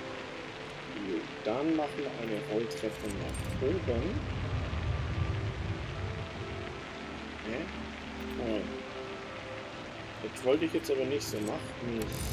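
A young man talks casually into a microphone, close by.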